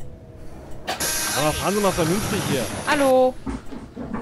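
A bus door opens with a pneumatic hiss.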